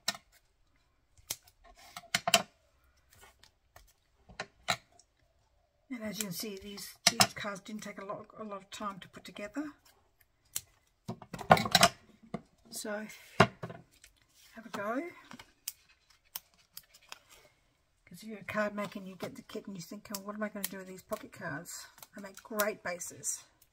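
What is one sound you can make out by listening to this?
Stiff paper rustles and taps as it is handled.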